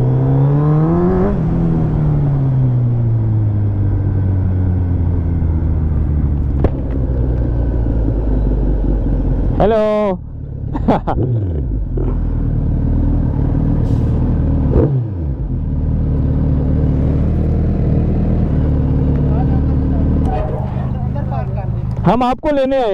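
A motorcycle engine runs close by, rising and falling as the bike rides along and then idles.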